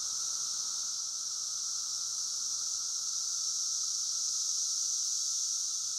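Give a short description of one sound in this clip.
A cicada buzzes loudly and steadily close by.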